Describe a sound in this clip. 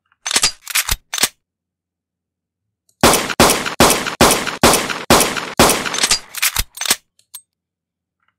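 A game pistol fires shots in quick bursts.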